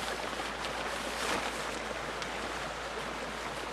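A plastic rain poncho rustles and flaps.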